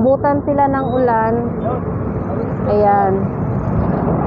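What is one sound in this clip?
A woman speaks close by with animation.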